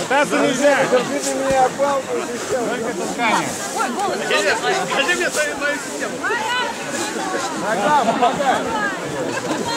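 A man speaks loudly to a crowd outdoors.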